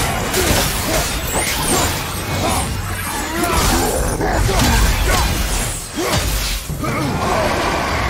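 Metal blades swing and strike in a rapid fight.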